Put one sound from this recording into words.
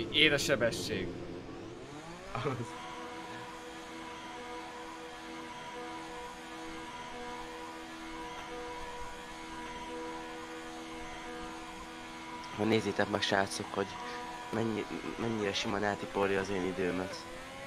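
A racing car engine roars at high revs, its pitch climbing and then holding steady.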